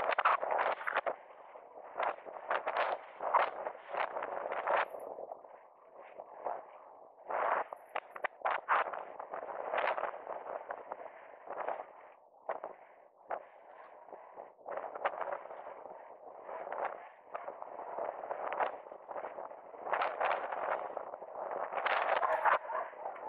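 Inline skate wheels roll and rumble steadily on asphalt.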